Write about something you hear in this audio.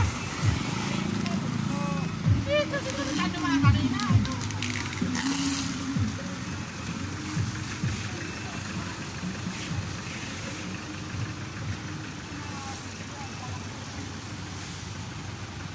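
Traffic rumbles steadily along a city street outdoors.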